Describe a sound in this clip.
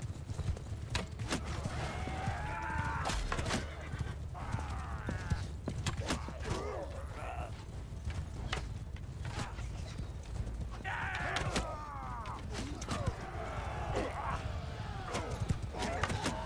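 A bowstring snaps as arrows are loosed.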